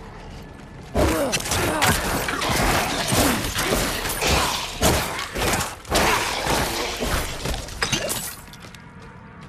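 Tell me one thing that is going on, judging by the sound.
Weapons slash and thud against monsters in a dense, noisy fight.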